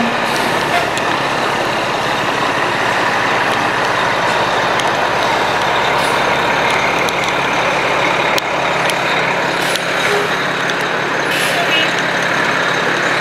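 A fire truck engine rumbles steadily nearby.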